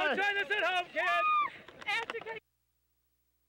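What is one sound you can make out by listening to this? A young woman shouts and cheers excitedly close by.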